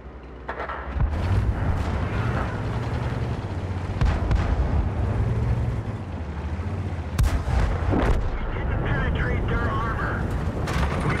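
A tank engine rumbles low.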